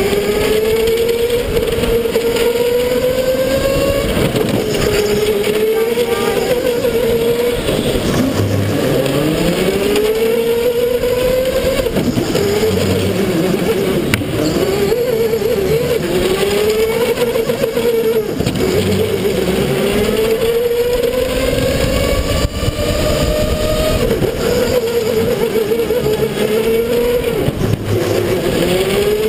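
Other kart engines buzz nearby.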